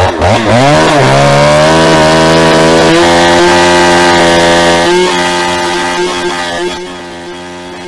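A chainsaw roars loudly as it cuts through a log.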